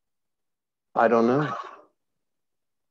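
A man speaks briefly over an online call.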